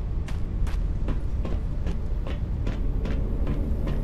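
Footsteps clang up metal stairs.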